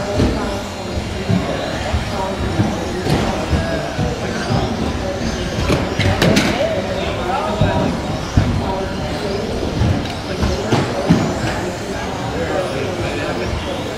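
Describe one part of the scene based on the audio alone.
Small electric model cars whine as they race around a track.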